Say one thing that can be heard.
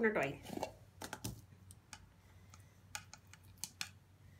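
A plastic container clicks and taps as it is handled.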